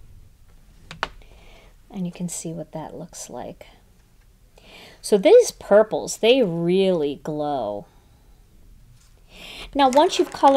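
A sheet of card rustles and taps as it is handled.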